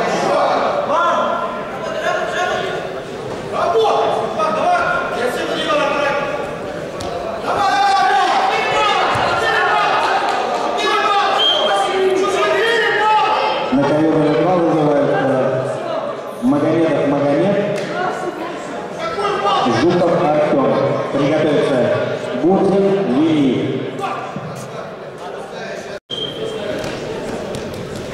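Men shout encouragement in an echoing hall.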